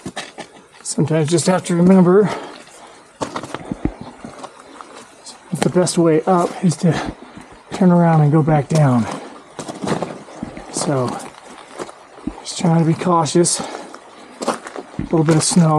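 A man speaks in short, breathless bursts close to the microphone.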